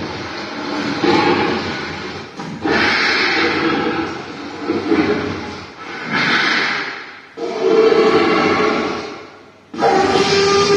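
An animatronic dinosaur roars loudly in a large echoing hall, in long repeated bursts.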